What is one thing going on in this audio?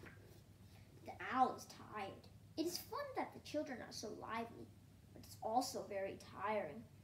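A young boy reads aloud close by.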